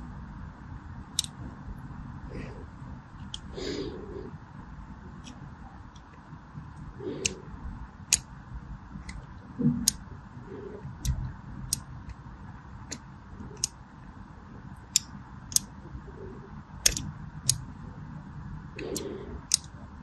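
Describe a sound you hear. A small blade scrapes and cuts into a bar of soap with crisp little crackles.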